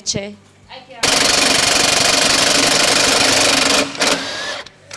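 An impact wrench whirs loudly on a wheel nut.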